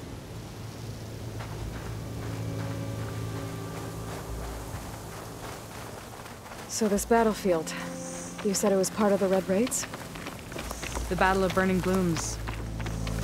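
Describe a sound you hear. Footsteps run quickly over dry grass and dirt.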